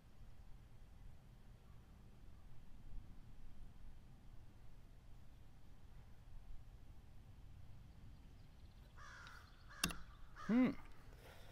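Light wind blows outdoors.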